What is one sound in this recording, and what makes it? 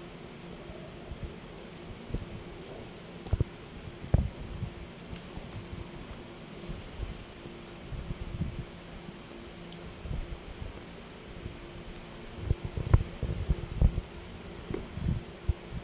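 A young girl chews food with her mouth closed.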